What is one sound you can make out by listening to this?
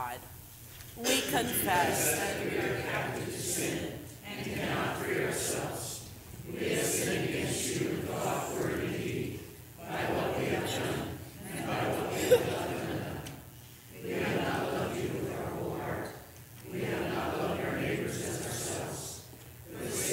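A piano plays in a large, echoing room.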